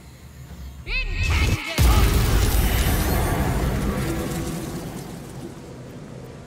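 A magic spell bursts with a loud crackling blast that slowly fades.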